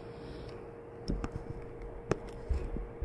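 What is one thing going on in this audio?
A bottle knocks onto a table.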